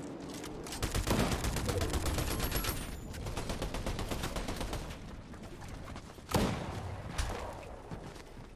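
Rapid clicks of game building pieces snap into place.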